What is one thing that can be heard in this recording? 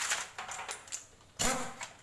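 A pneumatic impact wrench whirs briefly.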